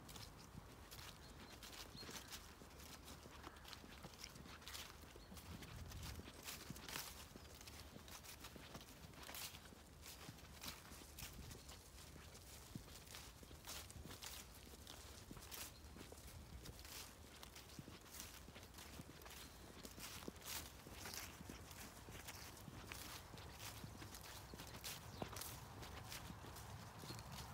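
Footsteps rustle through grass and dry leaves.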